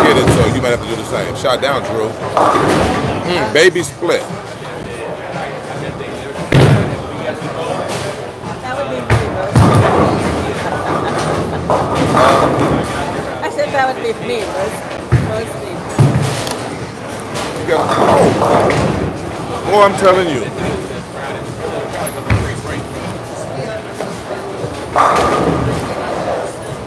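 A bowling ball rolls down a wooden lane.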